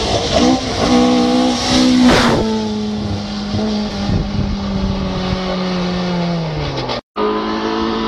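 A rally car engine roars and revs hard as the car speeds closer.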